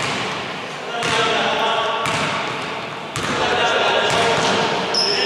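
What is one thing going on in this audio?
Young men shout across the court.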